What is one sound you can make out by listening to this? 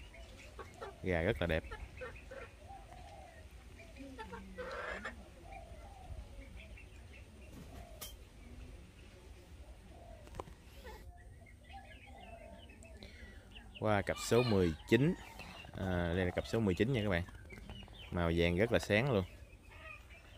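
Roosters crow loudly nearby, several times.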